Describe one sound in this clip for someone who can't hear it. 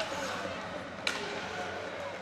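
A hockey stick sharply clacks against a puck.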